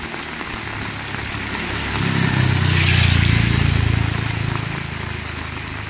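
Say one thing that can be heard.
A car engine hums as a vehicle drives past.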